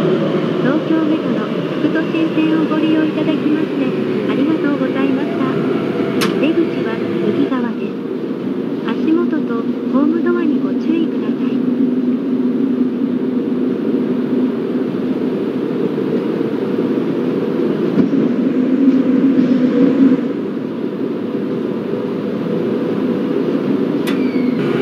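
An electric train motor hums and whines, its pitch shifting.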